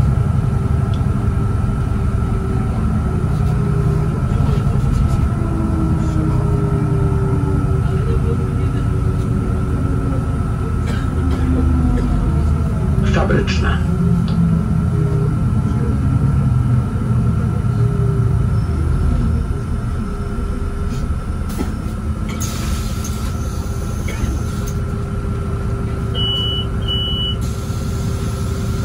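A diesel city bus drones while driving, heard from inside the cabin.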